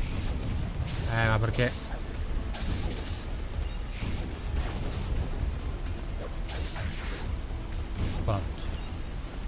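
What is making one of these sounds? Game sound effects of sword strikes and magic bursts clash in quick bursts.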